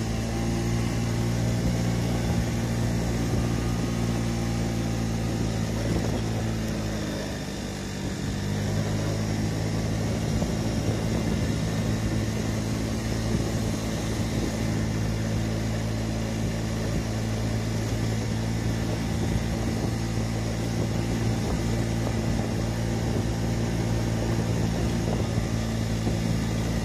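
A scooter engine hums steadily, easing briefly before picking up again.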